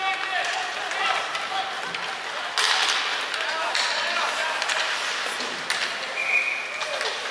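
Ice skates scrape and hiss across the ice in a large echoing arena.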